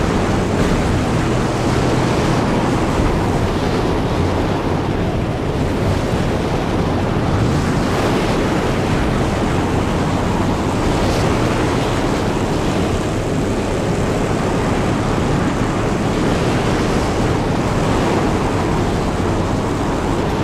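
A car engine roars steadily as the car speeds over rough ground.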